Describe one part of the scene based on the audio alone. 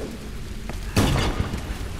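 A heavy object lands with a loud thud.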